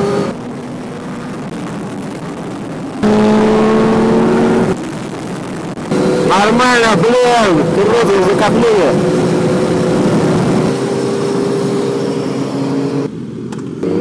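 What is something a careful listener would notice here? A motorcycle engine roars close by, its pitch rising and falling as it revs and shifts gears.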